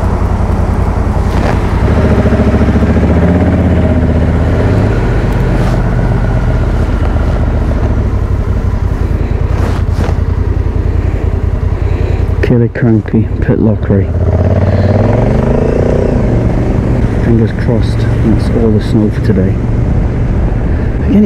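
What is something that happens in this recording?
A motorcycle engine hums and revs as the bike rides along.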